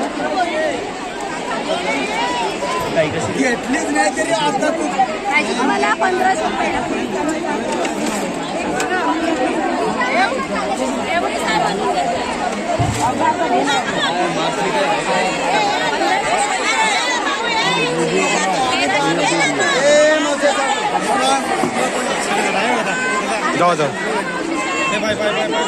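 A large crowd of men and women chatters loudly all around, close by.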